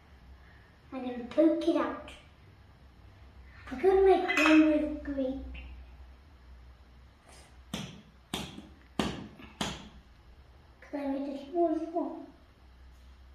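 A young child speaks nearby.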